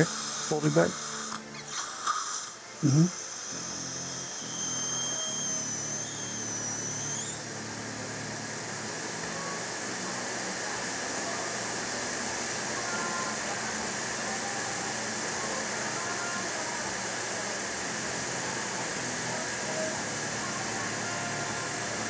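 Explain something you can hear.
A dental suction tube hisses steadily.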